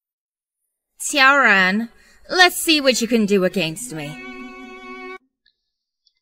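A young woman speaks coldly and close.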